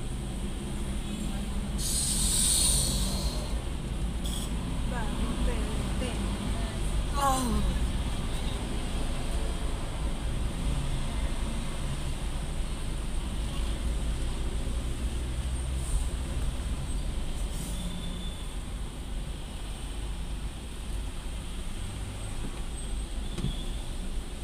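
A car engine hums low and steady from inside a slowly moving car.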